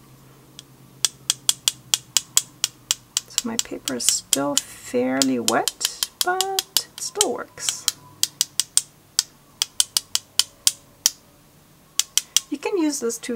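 A paintbrush taps sharply against a stick, quickly and again and again.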